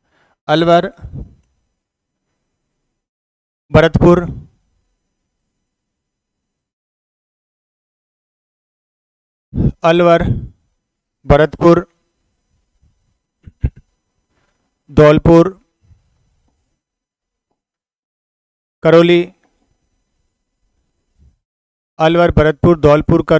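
A middle-aged man speaks calmly into a clip-on microphone, in short bursts with long pauses.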